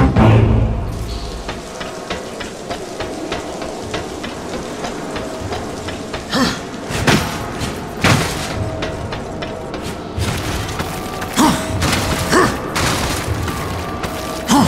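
Heavy armoured footsteps clank steadily on metal and stone.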